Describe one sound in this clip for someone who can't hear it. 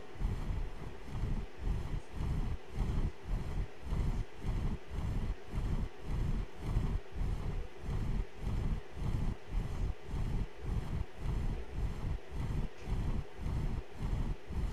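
Large wings flap in a steady, fast rhythm.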